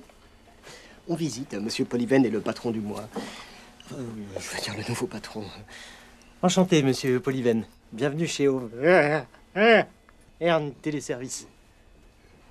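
A second man answers calmly close by.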